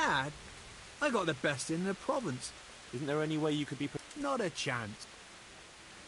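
A man answers gruffly and dismissively.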